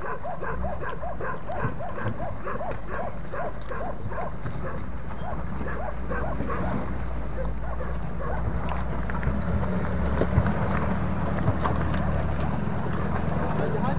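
Tyres crunch over loose stones.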